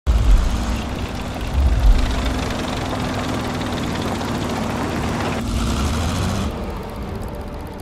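A tank engine rumbles steadily with clanking tracks.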